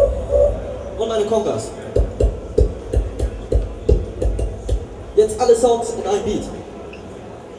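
A young man makes vocal scratching and humming sounds into a microphone.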